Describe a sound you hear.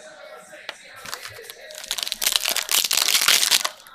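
Foil wrapping crinkles and tears loudly close by.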